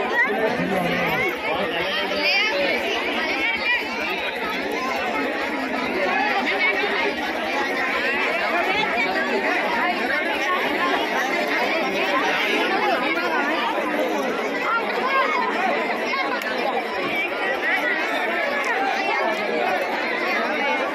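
A large crowd of men, women and children chatters loudly all around, close by.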